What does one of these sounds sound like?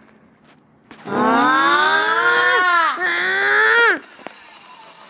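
Car engines rev loudly in a racing game.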